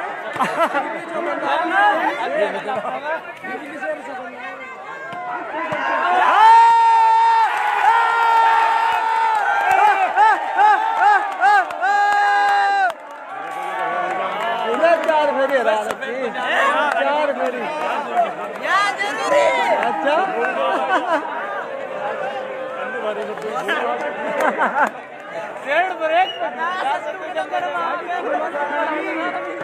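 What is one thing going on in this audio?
A large crowd talks and shouts outdoors.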